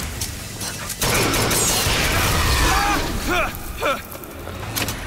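Fire roars and crackles in bursts of flame.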